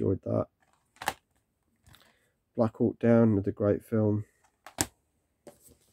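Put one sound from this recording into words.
A plastic case clacks down onto a stack of cases.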